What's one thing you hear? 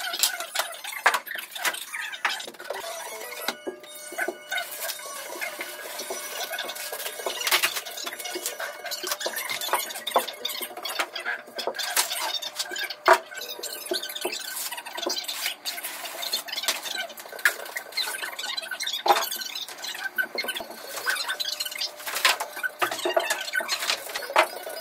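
Cardboard panels scrape and rustle as they are handled.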